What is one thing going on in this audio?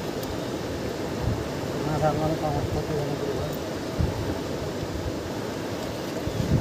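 A river rushes steadily nearby.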